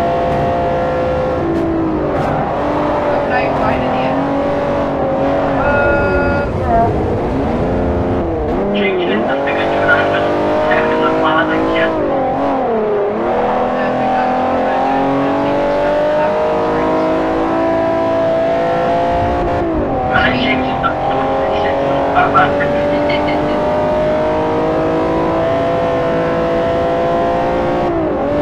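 A racing car engine roars loudly, dropping in pitch as it slows and climbing again as it speeds up.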